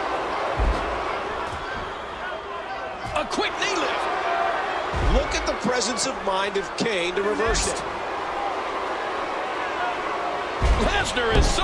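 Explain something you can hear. Heavy bodies slam down hard onto a wrestling ring mat.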